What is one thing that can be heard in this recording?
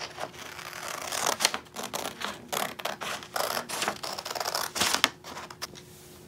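A sheet of paper rustles and crackles as it is handled.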